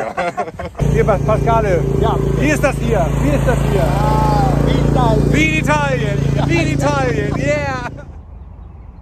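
A mower engine hums steadily nearby.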